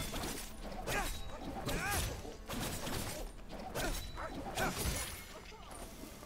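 Sword slashes whoosh and clash in quick bursts.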